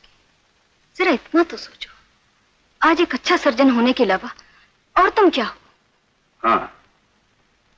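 A woman speaks with emotion and closely.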